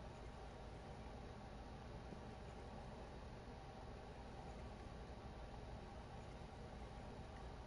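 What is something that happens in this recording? A fishing reel whirs steadily as its line is wound in.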